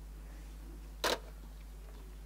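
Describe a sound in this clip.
A telephone receiver clicks down onto its cradle.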